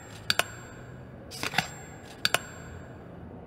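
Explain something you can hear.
Pliers snip through a small wire with a sharp click.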